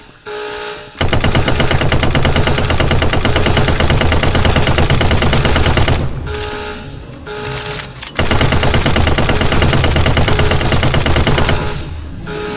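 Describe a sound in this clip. A gun fires in long rapid bursts.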